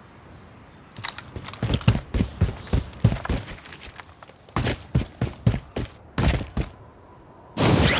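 Footsteps crunch quickly over gravel.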